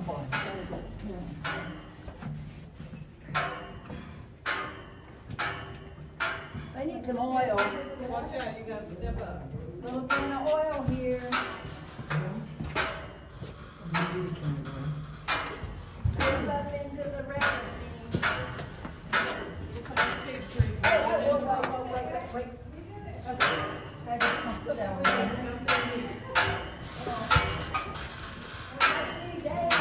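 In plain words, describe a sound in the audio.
Footsteps echo steadily through a narrow stone tunnel.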